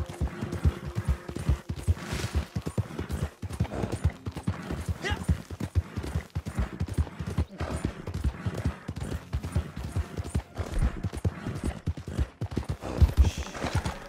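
Horse hooves thud steadily on a dirt trail.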